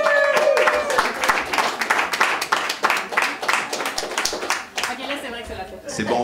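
A small group claps.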